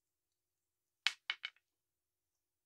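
Plastic toy bricks snap together.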